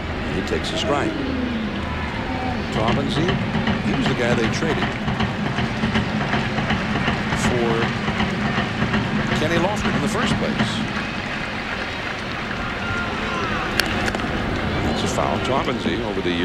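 A large crowd murmurs and shouts throughout a stadium.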